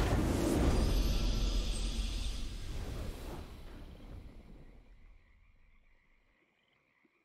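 A triumphant game victory fanfare plays loudly and fades away.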